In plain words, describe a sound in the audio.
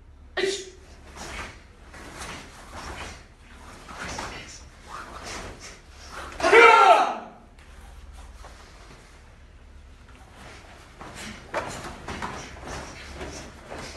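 Bare feet thump on a padded floor.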